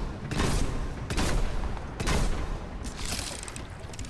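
Guns fire in quick bursts of loud bangs.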